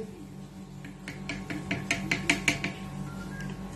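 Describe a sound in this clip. A spoon taps lightly against a plastic jar.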